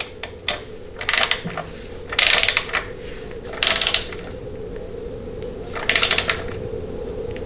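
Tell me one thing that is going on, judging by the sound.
A power ratchet whirs in short bursts on a bolt.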